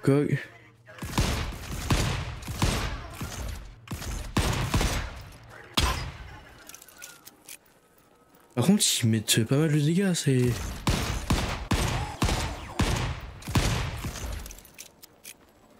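A revolver fires shot after shot in quick bursts.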